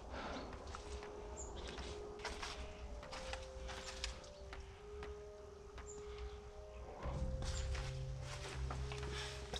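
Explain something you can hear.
Footsteps crunch over dry leaves and debris.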